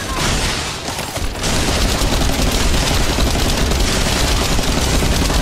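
Gunfire and blasts boom in a loud fight with a monster.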